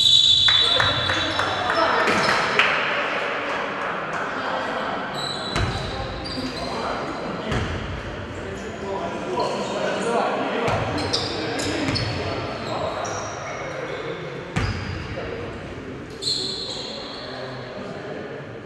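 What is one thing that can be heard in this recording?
Sneakers squeak sharply on a hard gym floor.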